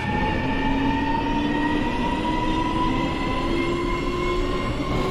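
Electric train motors whine steadily, slowly rising in pitch.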